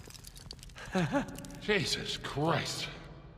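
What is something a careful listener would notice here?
An older man speaks with a laugh.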